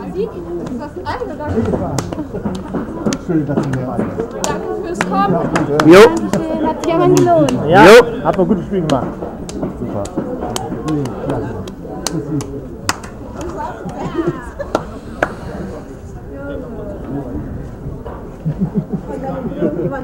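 Several young women talk and laugh close by, outdoors.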